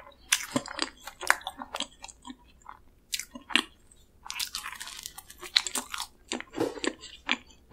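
Soft dough squishes as fingers squeeze a filled pastry up close.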